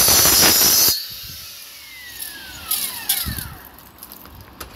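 A saw engine winds down after cutting stops.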